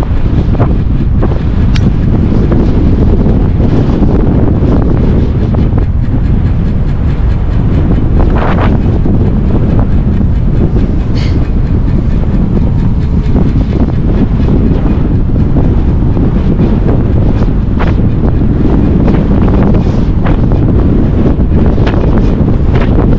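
Strong wind roars and buffets loudly outdoors during a fast ride.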